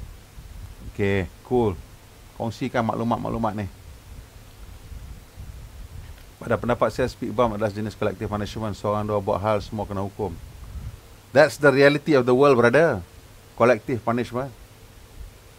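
A man talks calmly into a microphone in short bursts.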